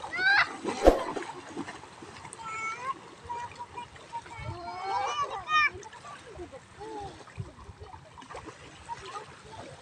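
Children shout and squeal playfully nearby, outdoors.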